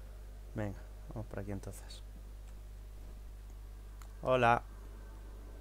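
A young man speaks briefly into a close microphone, with pauses.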